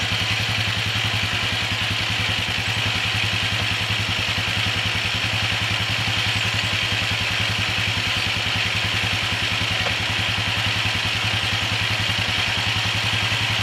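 An all-terrain vehicle engine idles close by with a steady low rumble.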